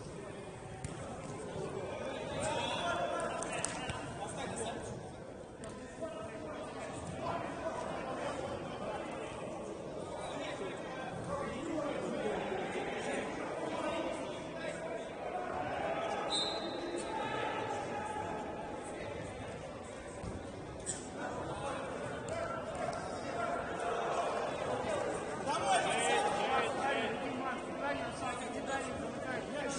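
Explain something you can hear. Men shout and call out to each other in an echoing indoor hall.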